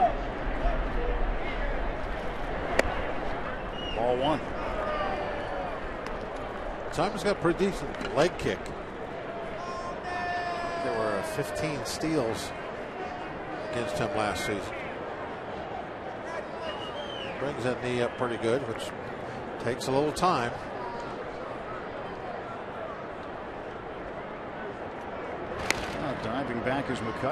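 A large crowd murmurs outdoors in a ballpark.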